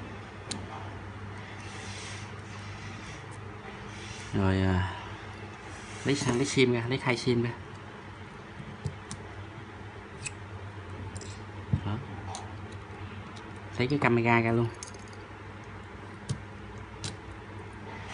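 Small metal tools click and tap against a phone's parts.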